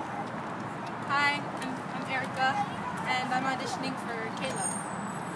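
A young girl speaks outdoors, close by.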